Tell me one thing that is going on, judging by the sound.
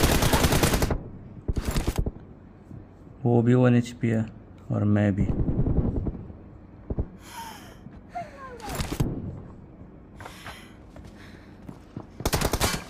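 Rapid gunfire bursts play from a phone's small speaker.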